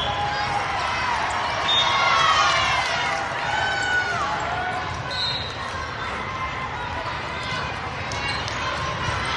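Young women chatter and cheer loudly in a large echoing hall.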